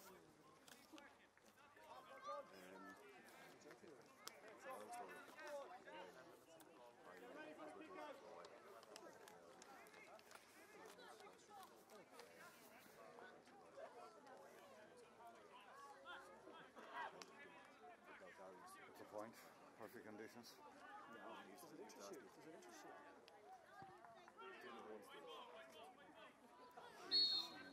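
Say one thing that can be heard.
Young players call and shout to each other across an open pitch, heard from a distance outdoors.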